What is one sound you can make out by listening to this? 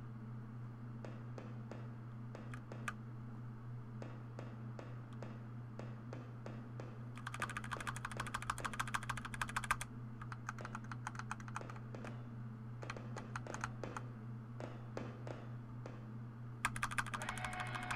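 Footsteps clank quickly on a metal floor.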